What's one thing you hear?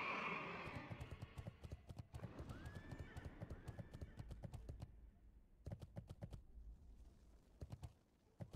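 Hooves thud rapidly on hard ground.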